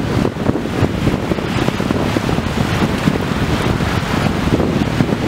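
Sea waves wash against a shore.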